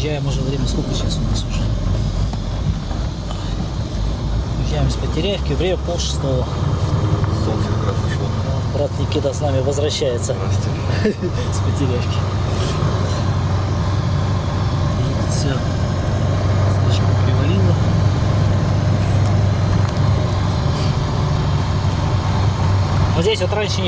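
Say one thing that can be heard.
A heavy truck engine drones steadily inside the cab.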